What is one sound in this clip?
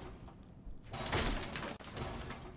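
Wooden boards smash and splinter.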